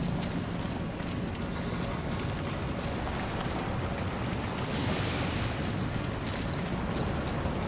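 Footsteps thud on a stone floor as a figure runs.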